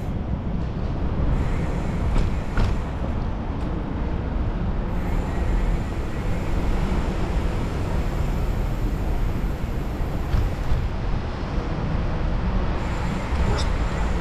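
Wind rushes and buffets steadily against the microphone while riding outdoors.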